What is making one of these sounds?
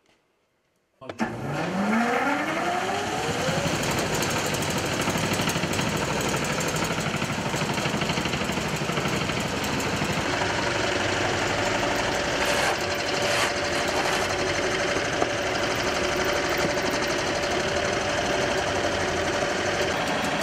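An electric motor starts up with a rising whine and then runs with a loud steady roar.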